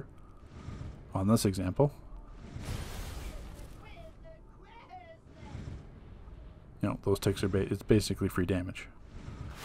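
Electric energy blasts crackle and whoosh in bursts.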